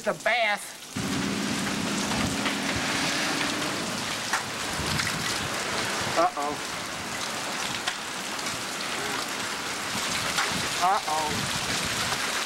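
Heavy rain patters steadily on wet pavement.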